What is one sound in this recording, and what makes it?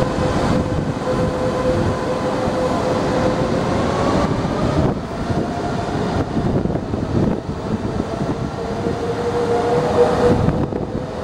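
A train rumbles steadily past close by.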